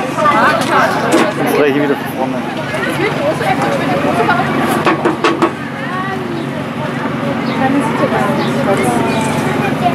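A parrot's beak taps and scrapes on a metal tin.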